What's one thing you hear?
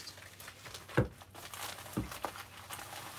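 A package thuds softly on a table.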